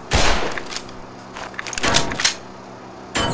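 A pistol magazine clicks out and snaps back in during a reload.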